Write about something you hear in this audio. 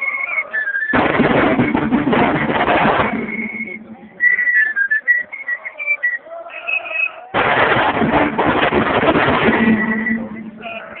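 A marching drum corps beats snare drums loudly in bursts close by.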